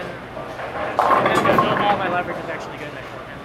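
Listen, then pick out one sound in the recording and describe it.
Bowling pins crash and clatter in an echoing hall.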